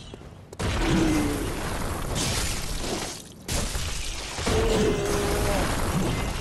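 A huge beast lets out loud, shrill shrieks.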